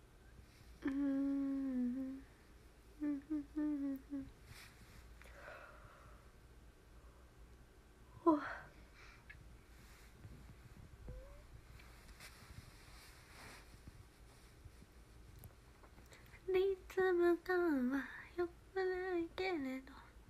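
A young woman speaks softly and close to a microphone.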